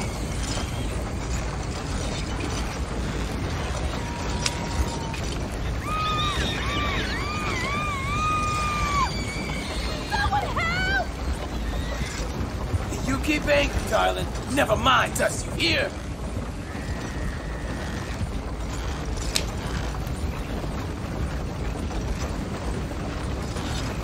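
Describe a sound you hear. A horse's hooves clop on the dirt road.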